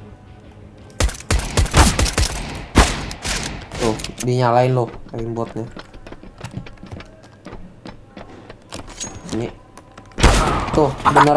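Pistol shots crack sharply several times.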